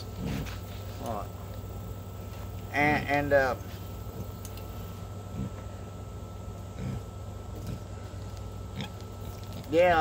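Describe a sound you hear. An elderly man speaks quietly nearby.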